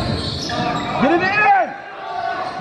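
Sneakers squeak sharply on a hard floor in a large echoing hall.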